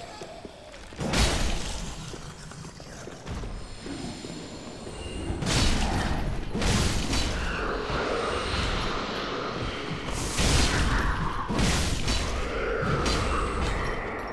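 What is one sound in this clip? Sword blows strike and slash with heavy impacts.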